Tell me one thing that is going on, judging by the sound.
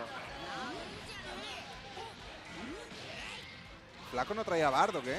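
Rapid game punches and energy blasts crack and thud.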